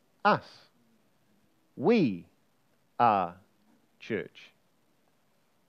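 A middle-aged man speaks with animation in short bursts, heard close through a microphone.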